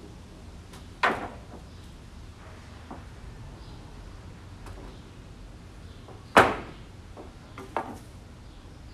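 Wooden boards knock and clatter as they are dropped.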